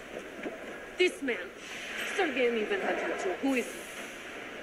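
A young woman speaks tensely and quietly, close by.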